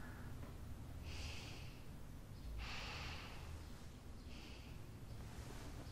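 A young woman breathes softly and sighs in her sleep.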